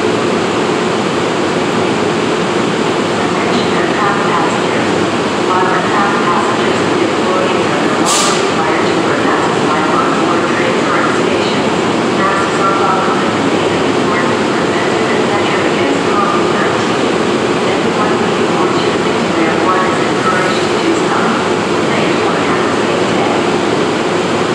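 A stationary train hums and rumbles steadily in a large echoing hall.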